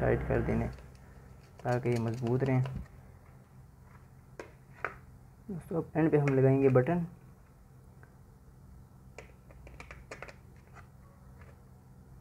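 Small screws and plastic parts click and tap as they are handled.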